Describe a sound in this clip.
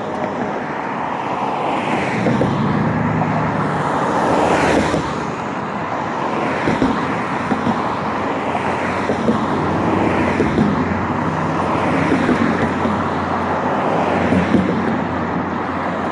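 Cars drive past on a nearby road, swelling and fading.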